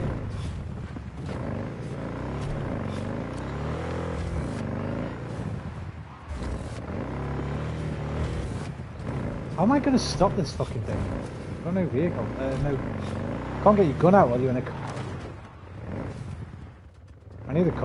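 A motorcycle engine hums and revs steadily.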